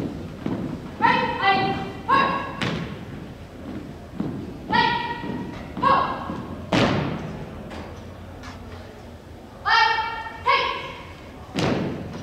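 A man shouts drill commands loudly, echoing in a large hall.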